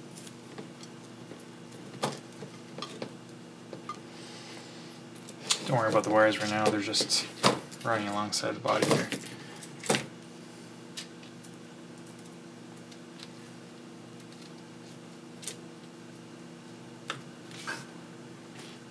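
Small electronic parts click and tap softly as they are handled.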